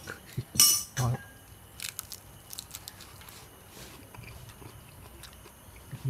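A man crunches a crisp fried shrimp while chewing.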